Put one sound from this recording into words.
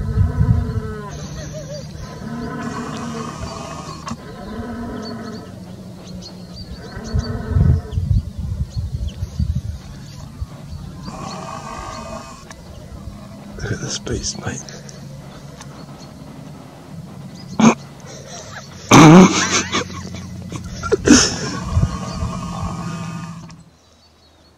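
A stag roars loudly in the distance, over and over.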